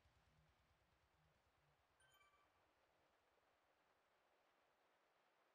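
A bike trainer whirs steadily under pedalling.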